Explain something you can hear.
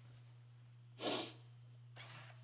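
A steam iron hisses briefly.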